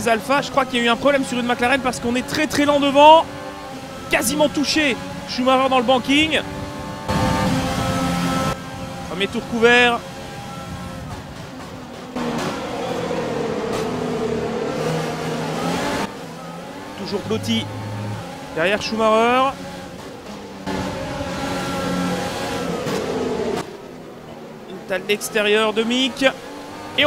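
A racing car engine roars and whines, its pitch rising and falling with each gear change.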